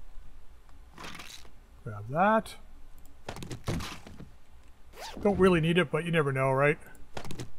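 A container is opened and rummaged through.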